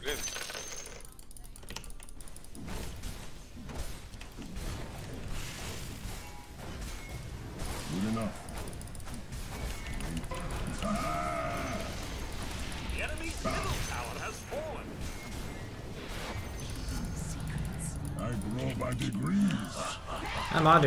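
Spells and weapon clashes crackle and thud in a fast fight.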